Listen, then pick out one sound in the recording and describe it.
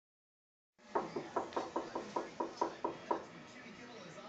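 A parrot squawks loudly in quick repeated bursts.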